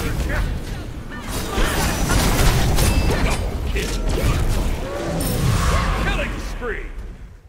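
Game spells blast and crackle with fiery bursts.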